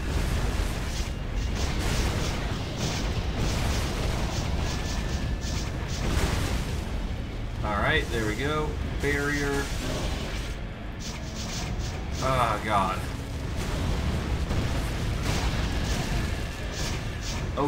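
Magic spells crackle and boom in a fast fight.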